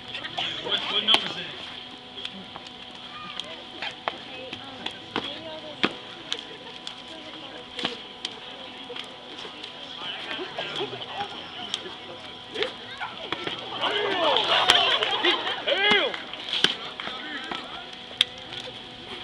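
A crowd of onlookers chatters and cheers from a distance outdoors.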